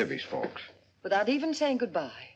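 A middle-aged woman speaks nearby.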